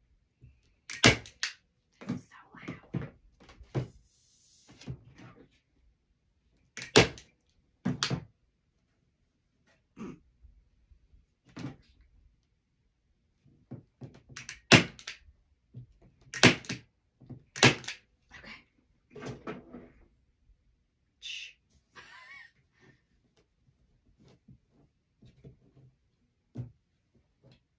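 Objects knock and tap sharply on a table.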